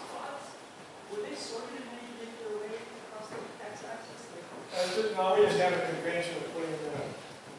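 A man speaks through loudspeakers in a large echoing hall.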